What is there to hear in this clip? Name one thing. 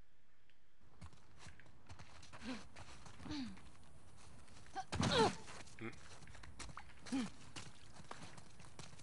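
Footsteps run and scuff over a wet path.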